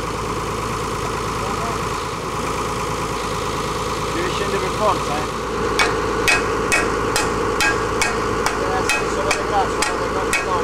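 A truck-mounted crane engine hums steadily nearby.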